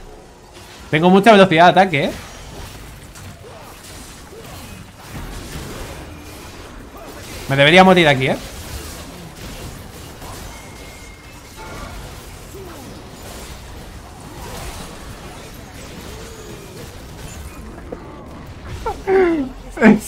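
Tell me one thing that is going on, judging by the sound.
Video game sound effects of fighting play throughout.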